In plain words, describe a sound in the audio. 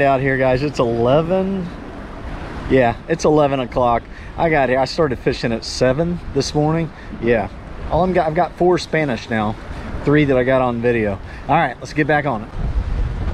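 A middle-aged man talks cheerfully close to a microphone.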